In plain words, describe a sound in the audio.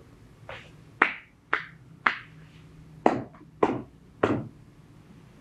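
Hands slap sharply on a person's legs several times.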